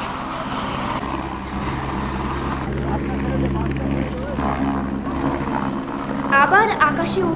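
A helicopter's engine and rotor grow louder and deeper as it lifts off.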